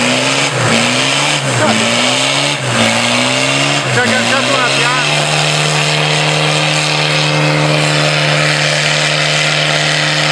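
An off-road vehicle's engine revs hard, rising and falling in pitch, then holds a steady roar.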